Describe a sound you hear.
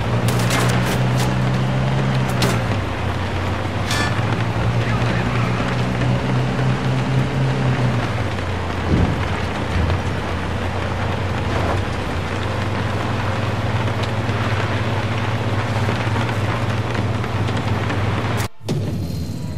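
Tyres rumble over a rough dirt road.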